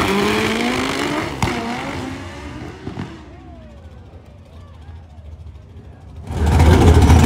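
A race car engine roars as the car launches and speeds away into the distance.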